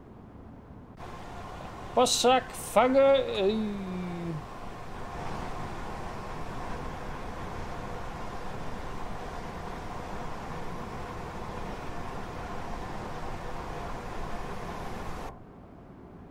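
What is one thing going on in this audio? A train rumbles past on the rails.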